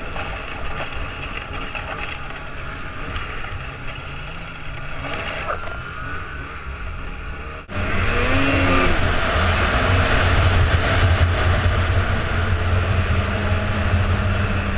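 A snowmobile engine roars steadily close by, revving up and down.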